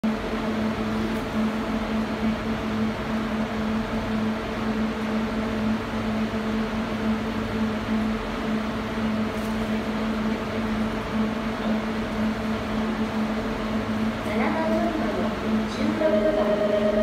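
A bus engine idles with a steady low hum nearby.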